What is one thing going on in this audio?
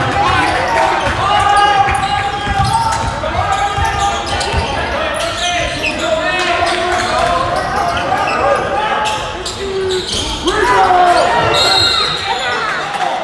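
A crowd of men and women murmurs and calls out in a large echoing hall.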